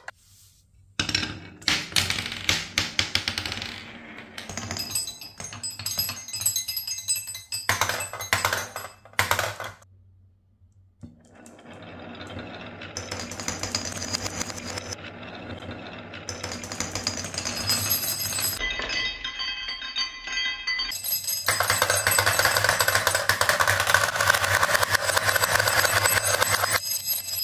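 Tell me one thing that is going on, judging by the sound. Marbles roll and rattle quickly along wooden tracks.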